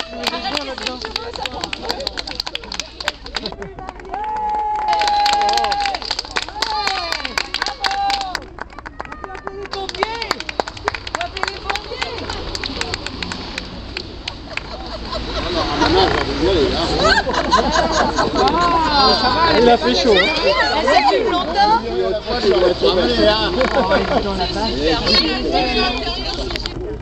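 A crowd of men and women talk and cheer excitedly nearby outdoors.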